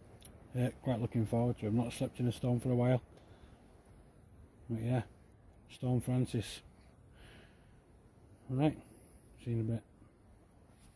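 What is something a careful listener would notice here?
A man speaks quietly and close by, in short bursts.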